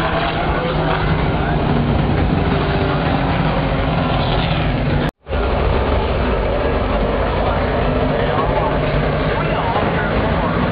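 Race car engines roar loudly outdoors.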